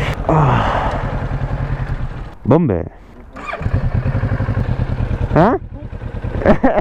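A motorcycle engine revs sharply up and down several times.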